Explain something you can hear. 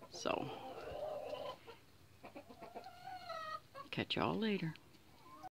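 A young chicken peeps and trills loudly, close by.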